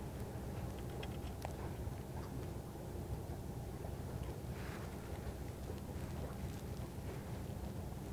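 Wind rumbles steadily across the microphone outdoors.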